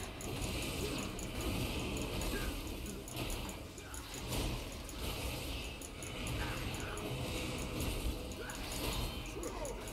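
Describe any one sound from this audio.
Lightning zaps and crackles.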